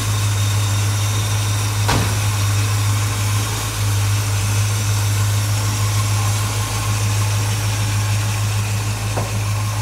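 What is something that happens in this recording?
A car engine idles with a steady low rumble close by.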